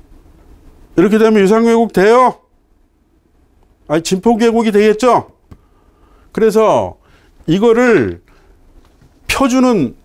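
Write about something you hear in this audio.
A middle-aged man lectures through a clip-on microphone, speaking in emphatic bursts with pauses.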